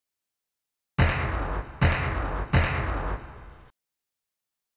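Heavy booming thuds land one after another and fade.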